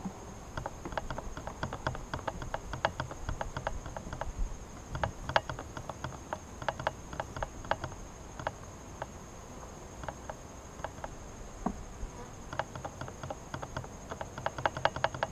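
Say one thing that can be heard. Wooden hive frames knock and scrape as they are lifted.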